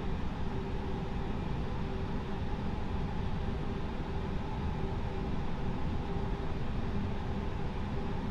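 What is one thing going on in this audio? Jet engines drone steadily in a cockpit.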